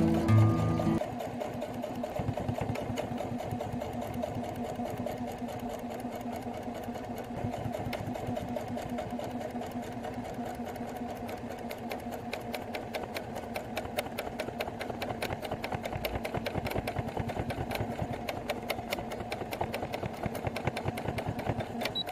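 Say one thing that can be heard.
A sewing machine stitches with a fast, steady rattle.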